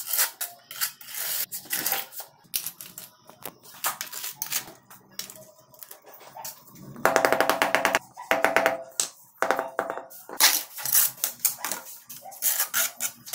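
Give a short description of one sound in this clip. A trowel scrapes wet mortar.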